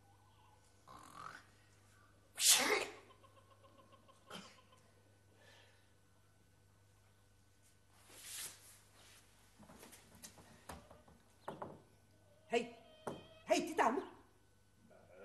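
A young woman sobs and cries out close by.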